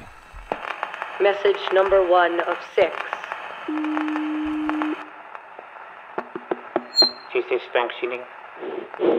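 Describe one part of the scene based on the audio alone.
A gramophone plays tinny old music.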